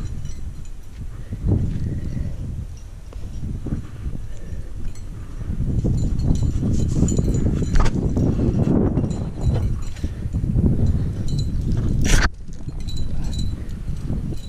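A climber's hands scrape and rub against rough rock.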